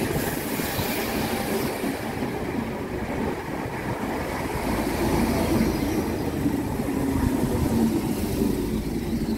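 A train rumbles past close by, its wheels clattering on the rails.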